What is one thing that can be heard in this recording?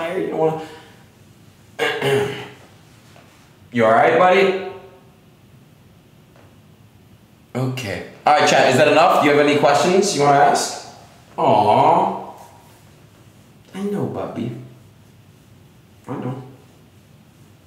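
A young man talks playfully and with animation, close to a microphone.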